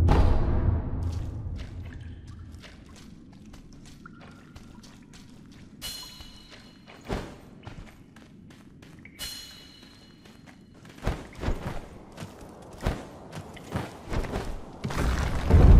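Footsteps crunch on rough ground.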